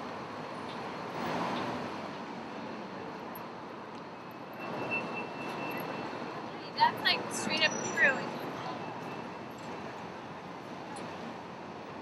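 Cars drive past on the road.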